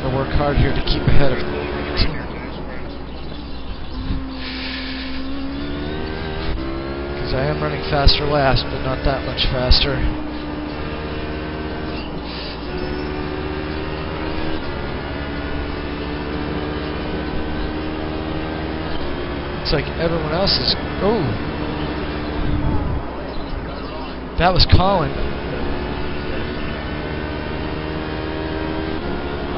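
A racing car engine drones and revs up and down through the gears from loudspeakers.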